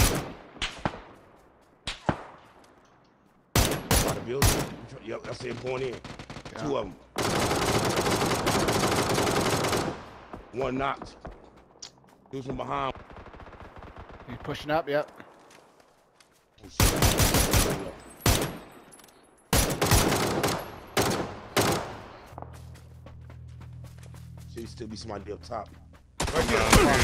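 Rifle shots crack loudly, ringing out over open ground.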